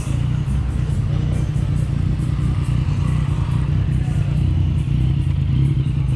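A motorcycle rides past close by.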